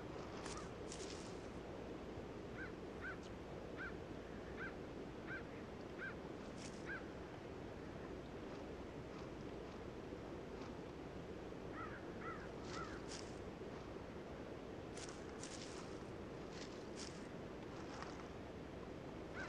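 Dry leaves rustle under a deer's hooves.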